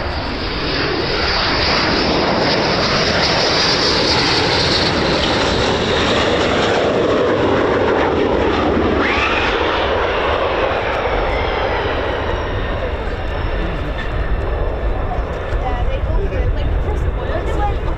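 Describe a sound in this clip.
A jet roars loudly overhead as it comes in to land, then fades away.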